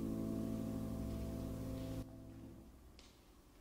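An accordion holds a chord and stops, ringing out in an echoing hall.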